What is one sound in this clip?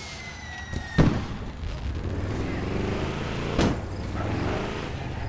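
A car engine starts and revs loudly.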